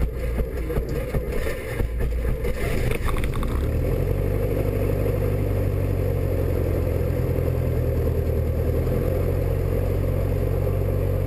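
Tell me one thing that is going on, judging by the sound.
Tyres rumble over a runway.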